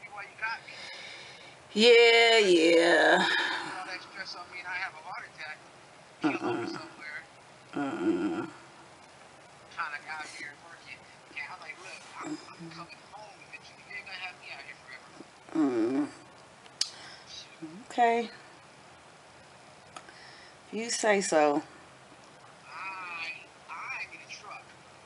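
A woman talks on a phone close by, in bursts with pauses.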